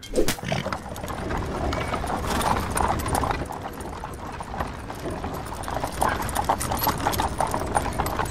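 Horses' hooves clop on a stony road.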